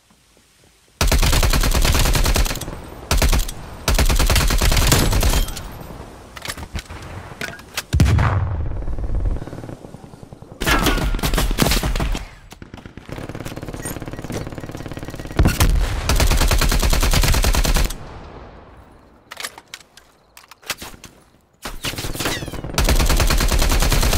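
Rapid bursts of automatic gunfire ring out, loud and close.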